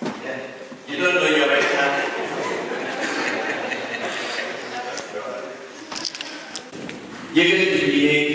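A crowd laughs and cheers in an echoing hall.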